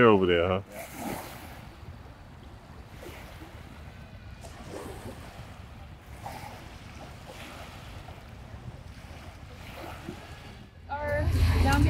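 Small waves lap gently against the shore.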